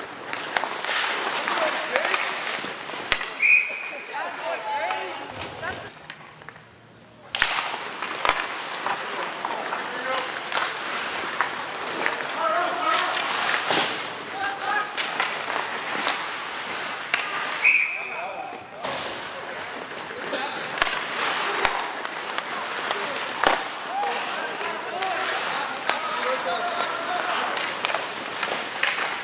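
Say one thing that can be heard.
Ice skates scrape and hiss across the ice in a large echoing hall.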